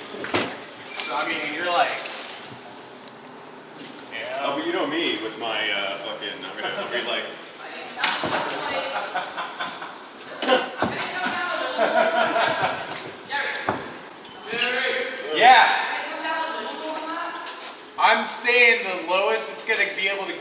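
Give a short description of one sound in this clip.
Men talk and laugh loudly nearby.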